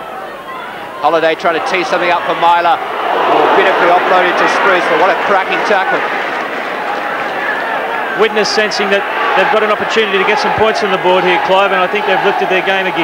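A crowd of spectators cheers and roars outdoors.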